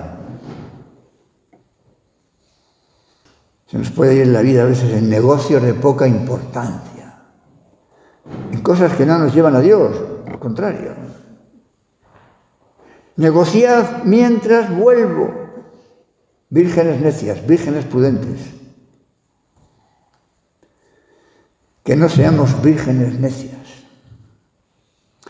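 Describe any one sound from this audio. An elderly man speaks calmly and slowly into a microphone, pausing between phrases.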